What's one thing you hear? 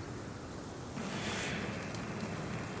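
A magical burst whooshes loudly.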